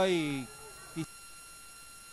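A football is struck hard with a foot.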